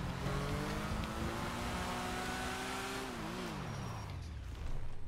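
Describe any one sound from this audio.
A motorcycle engine revs and then winds down.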